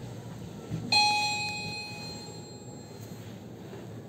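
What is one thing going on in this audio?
An elevator chime rings once.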